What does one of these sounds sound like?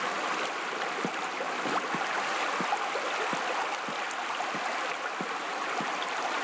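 Footsteps walk at a steady pace on a hard floor.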